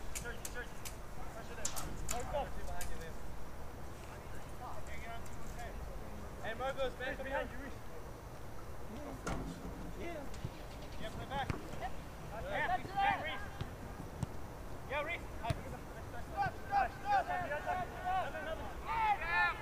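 Young men shout to one another across an open outdoor field.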